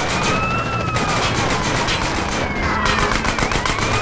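A vehicle crashes into another with a loud crunch.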